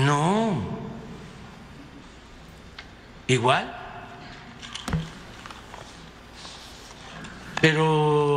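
An elderly man speaks at a measured pace into a microphone, in short bursts with pauses.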